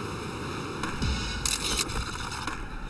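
A skateboard clatters as it lands a trick.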